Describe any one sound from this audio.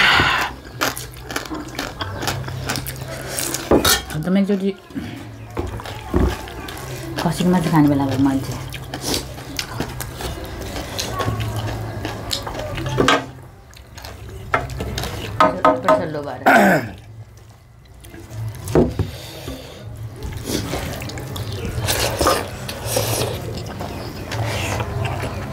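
People chew and smack their lips loudly.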